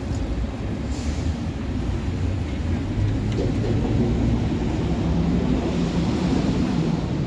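Low city traffic noise rumbles steadily outdoors.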